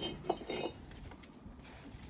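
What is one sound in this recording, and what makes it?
A brick clunks as it is set down.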